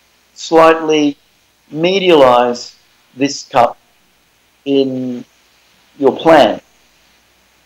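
A man speaks calmly through an online call, heard over loudspeakers.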